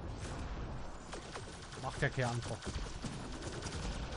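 A laser weapon fires with a buzzing hum.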